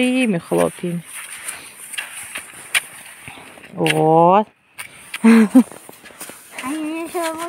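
Skis swish and crunch over snow.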